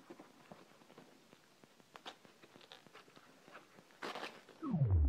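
Paper crinkles and rustles close by.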